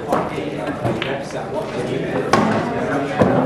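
A cue strikes a pool ball with a sharp click.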